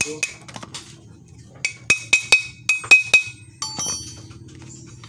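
Metal engine parts clink and knock together as they are handled.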